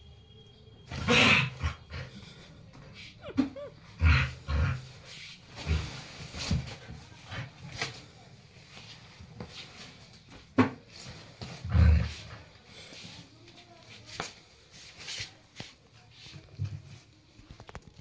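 A dog tugs and shakes a cloth, with fabric rustling and thumping.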